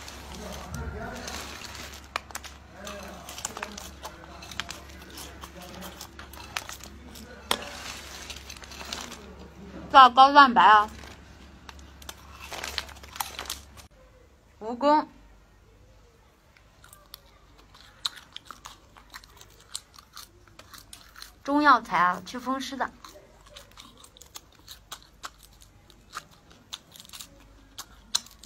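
A young woman chews crunchy food close up.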